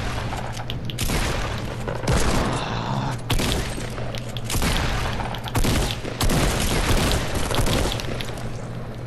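Shotguns fire in rapid, loud bursts.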